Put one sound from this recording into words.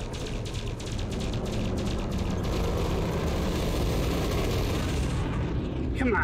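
Laser cannons fire in a rapid hissing stream.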